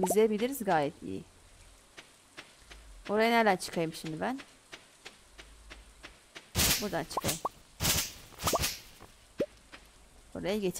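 Footsteps patter softly over grass.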